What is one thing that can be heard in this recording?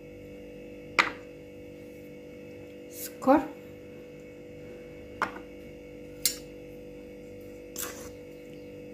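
Small glasses clink as they are set down on a hard surface.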